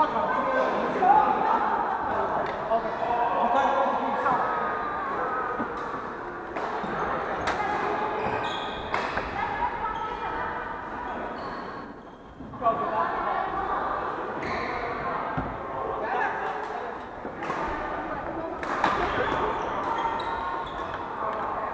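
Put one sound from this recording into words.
Shuttlecocks are struck sharply with rackets, echoing in a large hall.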